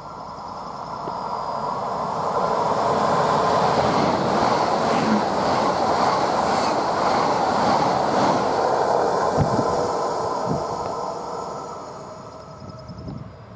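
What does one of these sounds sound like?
An electric train rushes past close by with a loud roar and rattle.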